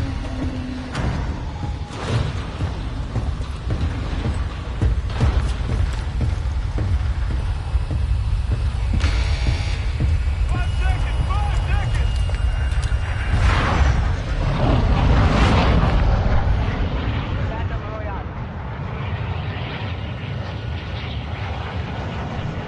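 Aircraft engines drone in a low, steady roar.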